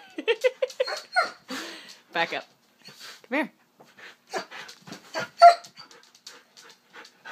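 A dog squeezes a rubber toy that squeaks again and again.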